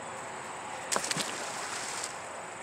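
Something splashes into water.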